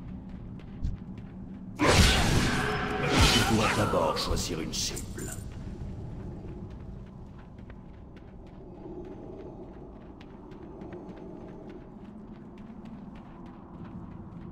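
Footsteps patter across the ground.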